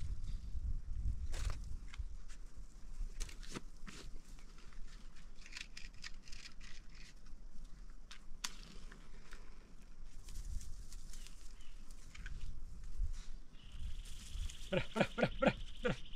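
A man's footsteps crunch on dry grass and stones.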